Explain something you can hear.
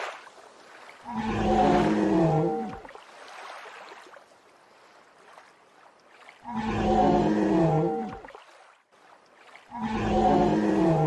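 A large beast roars with a deep, rumbling bellow, several times.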